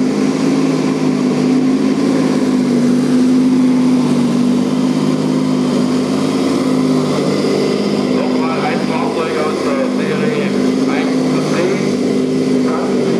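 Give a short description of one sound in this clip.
A small model tank's electric motors whine and hum steadily.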